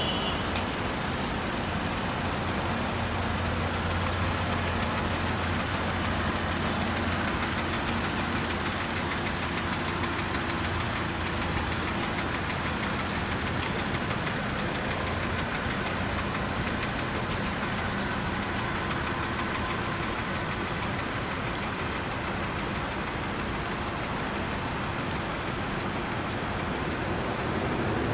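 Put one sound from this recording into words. Traffic rumbles steadily on a nearby road.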